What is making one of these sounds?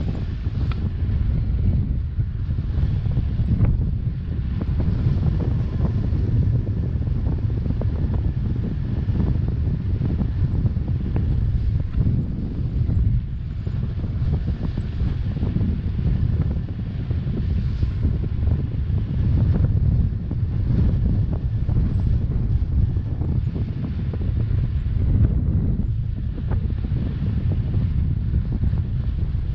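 Strong wind rushes and buffets loudly past a microphone high in the air.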